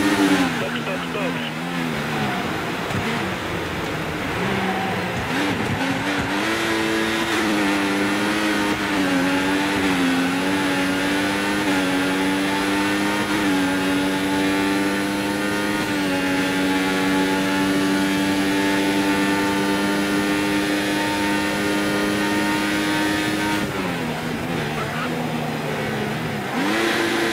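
A racing car engine roars, rising in pitch as it shifts up through gears and dropping as it brakes.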